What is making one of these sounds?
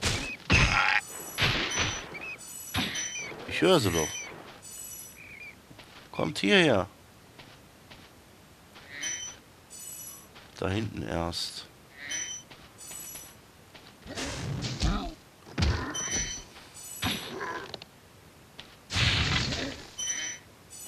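Bright chiming jingles ring out again and again.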